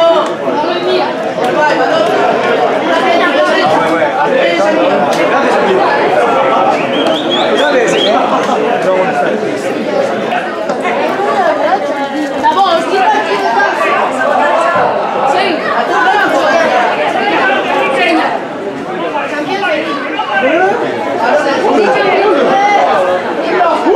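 Spectators at an outdoor football match chatter and call out close by.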